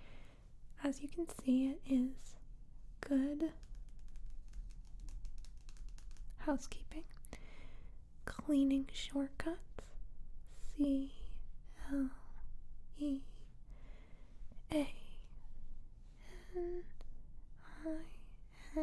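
Fingernails scratch across a glossy magazine cover, close by.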